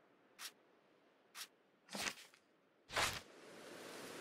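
Short menu clicks sound.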